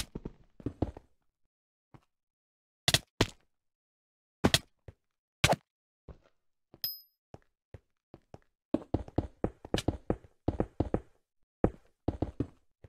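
Game blocks thud and pop in quick bursts as they are placed.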